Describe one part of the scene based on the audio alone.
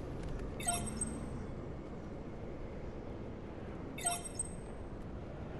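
Game chimes ring out briefly.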